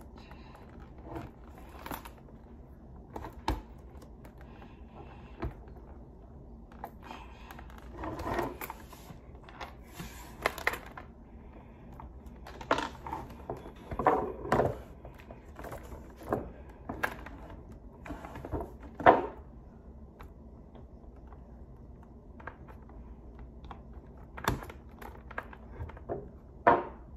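Small plastic parts click and rattle against a helmet close by.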